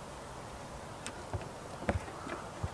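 A goat's hooves clatter on wooden boards.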